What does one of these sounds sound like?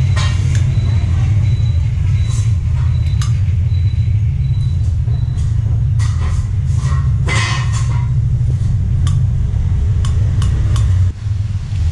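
Metal engine parts clink and tap as they are handled.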